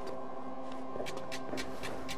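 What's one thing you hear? Soft footsteps pad across a hard floor.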